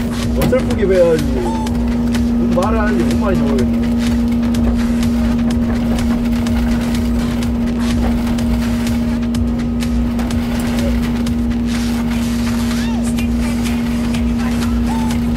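An excavator engine hums steadily close by.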